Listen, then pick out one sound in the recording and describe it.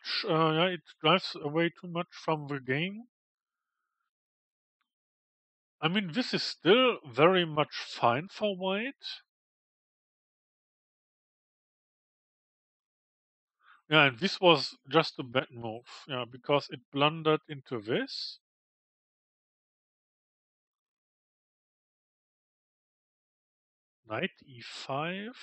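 A man talks calmly and closely into a microphone, in bursts with pauses.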